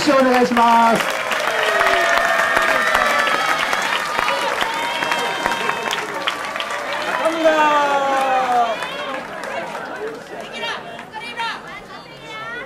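A crowd cheers and claps outdoors.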